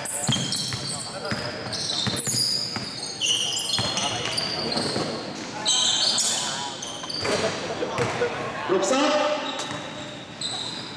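Players' footsteps patter across the court.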